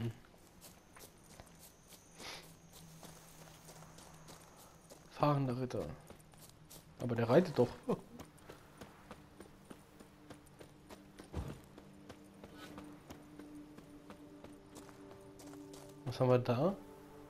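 Footsteps thud quickly on a dirt path.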